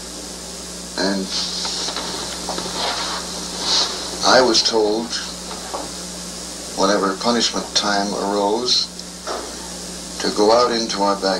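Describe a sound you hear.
A man speaks calmly, heard through an old, hissy broadcast recording.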